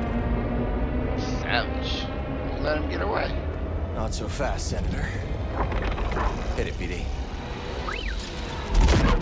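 A small robot beeps and warbles.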